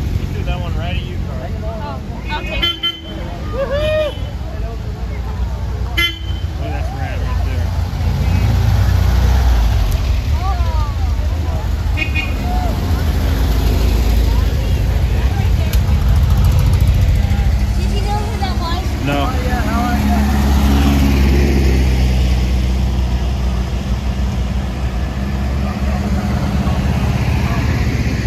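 Old car engines rumble and putter as vehicles drive slowly past.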